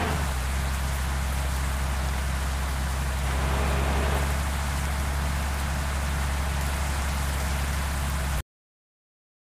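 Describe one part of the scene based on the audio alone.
A bus engine drones while cruising at speed.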